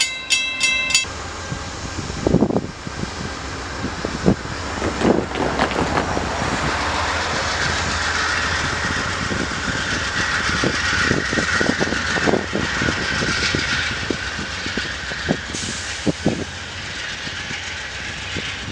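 A diesel passenger locomotive rumbles as it approaches.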